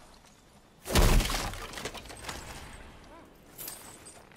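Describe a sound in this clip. A heavy wooden chest is forced open with a loud thud.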